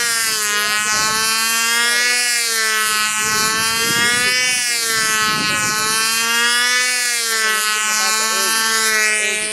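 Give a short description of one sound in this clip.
A model airplane's motor whines steadily overhead, its pitch rising and falling as it passes.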